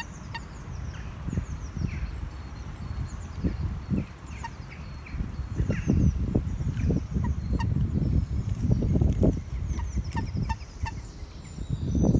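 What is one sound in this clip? A bird chirps and sings nearby, outdoors.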